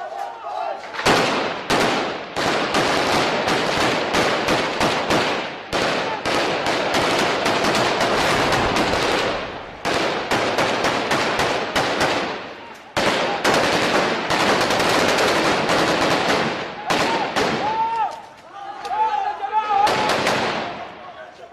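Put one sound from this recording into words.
Rifles fire rapid, loud bursts of gunshots close by.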